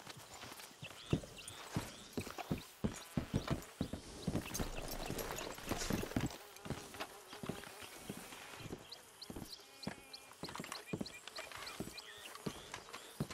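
Boots thud on wooden boards.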